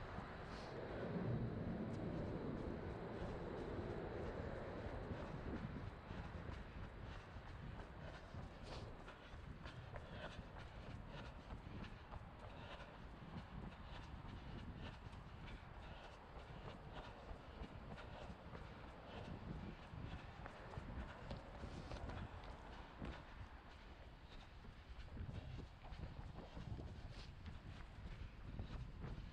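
Running footsteps thud quickly and steadily on pavement.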